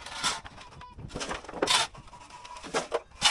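Chunks of rubble clatter into a metal wheelbarrow.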